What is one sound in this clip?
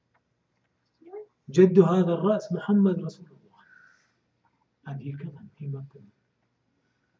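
An elderly man speaks slowly and with feeling into a microphone, pausing between phrases.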